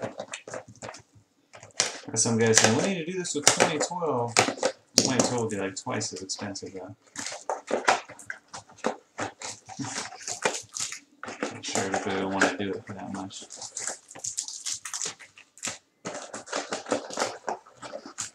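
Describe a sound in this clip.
Cardboard flaps and packs scrape and rustle close by.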